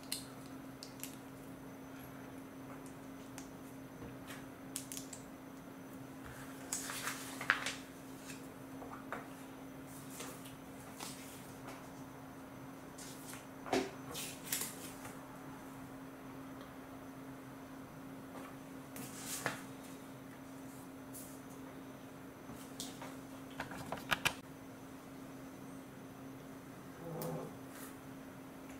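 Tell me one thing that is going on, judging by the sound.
Small plastic toy bricks click and snap together.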